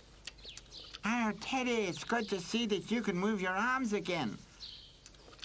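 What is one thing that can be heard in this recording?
A cartoon animal speaks in a high, lively voice.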